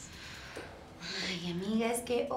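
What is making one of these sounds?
A young woman sighs and says a short word warmly, close by.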